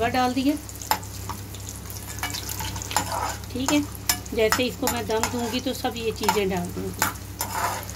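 A metal spatula scrapes and clinks against a frying pan.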